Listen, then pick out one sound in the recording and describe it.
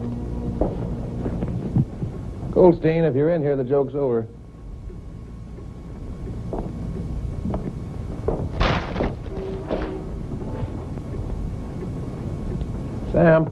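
A man's footsteps thud slowly across a floor indoors.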